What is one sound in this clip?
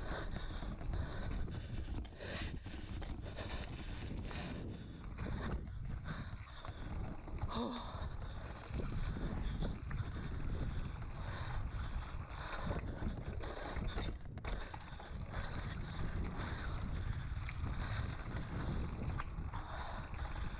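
A bicycle frame rattles and clatters over bumps.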